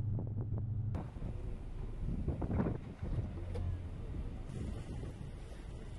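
Waves splash against a boat's hull.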